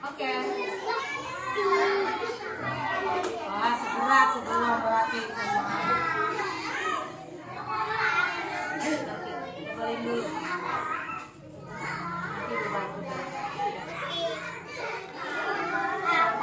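Young children chatter nearby in a room.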